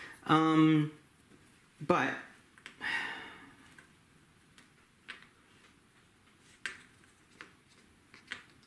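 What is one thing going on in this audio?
Small game pieces and cards tap and click softly on a table.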